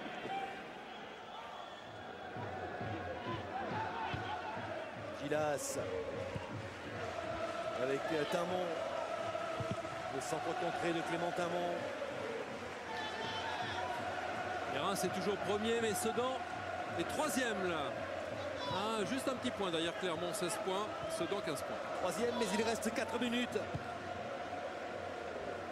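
A large stadium crowd chants and sings steadily.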